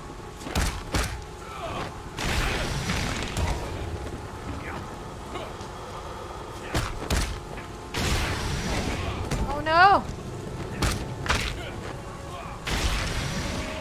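Heavy blows and impacts thud and crash.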